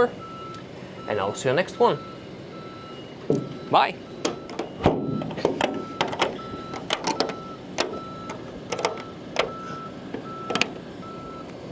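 Hands knock and tap on a metal panel.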